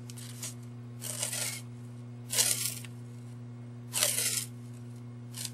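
Masking tape rustles and crackles as it is pulled and pressed around a glass jar.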